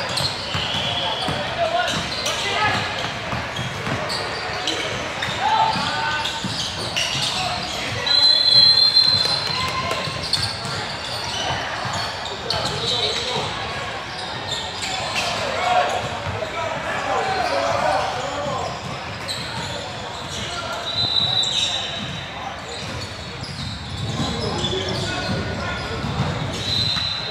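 Young male players call out to each other in a large echoing gym.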